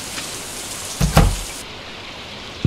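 A wooden door opens with a thud.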